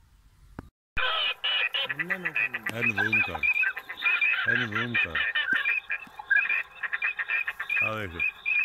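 A flock of water birds calls loudly and constantly.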